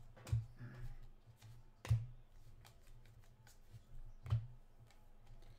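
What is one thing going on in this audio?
Cardboard trading cards rustle and slide against each other in hands.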